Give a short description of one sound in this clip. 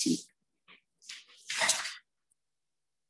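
A woman speaks briefly.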